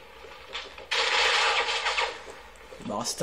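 Gunfire rattles from a video game.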